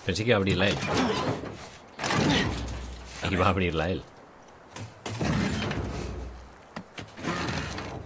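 A heavy metal door rattles and thuds.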